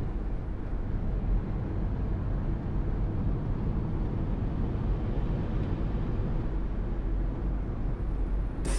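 Tyres roll on the road with a low steady hum.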